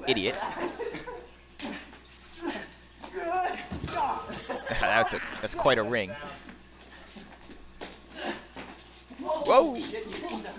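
Bodies thud and feet scuffle on a hard floor.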